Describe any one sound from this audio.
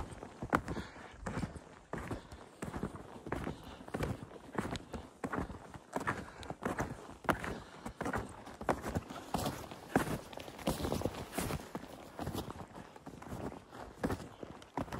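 Boots crunch steadily on snow.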